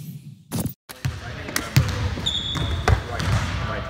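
A basketball bounces and thuds on a hard court in a large echoing gym.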